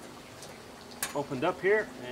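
A metal grill grate clanks as it is set down.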